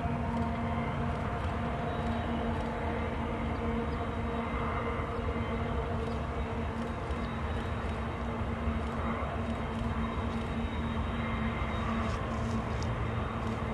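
Freight cars roll and clatter along the rails far off.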